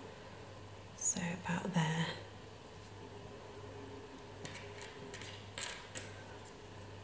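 Paper rustles and crinkles softly as hands handle it.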